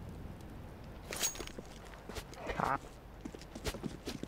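Game footsteps patter quickly on hard ground.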